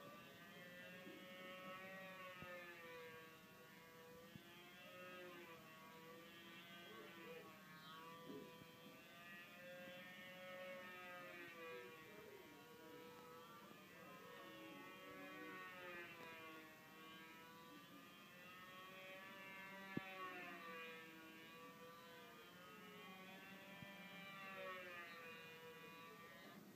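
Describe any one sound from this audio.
A small model plane engine buzzes loudly, its pitch rising and falling.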